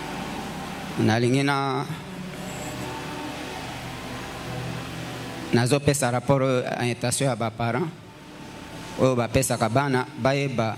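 A man speaks into a microphone, heard through a loudspeaker, in short bursts.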